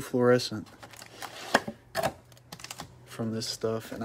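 Card packs tap down onto a stack.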